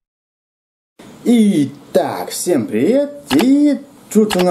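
A young man talks animatedly close to a microphone.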